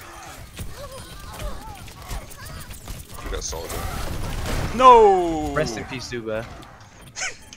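Rapid gunshots fire from a game weapon.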